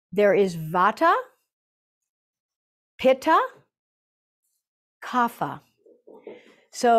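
A middle-aged woman speaks calmly and gently into a close microphone, with pauses between phrases.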